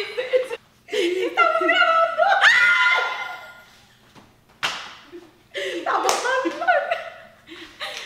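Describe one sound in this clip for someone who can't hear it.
Two women laugh excitedly close by.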